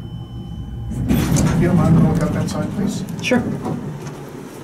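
Elevator doors slide open and shut.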